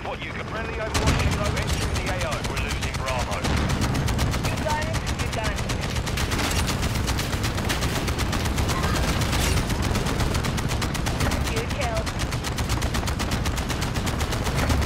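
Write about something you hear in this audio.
Heavy cannon rounds fire in a fast, steady rattle.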